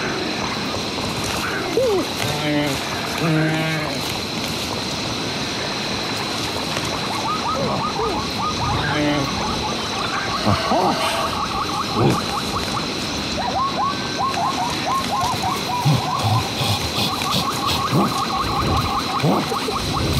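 Footsteps pad softly over dirt and grass.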